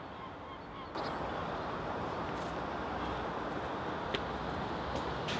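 Footsteps shuffle softly on grass outdoors.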